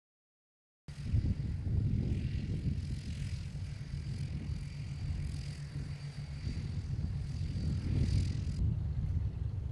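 A propeller plane's engine drones steadily nearby.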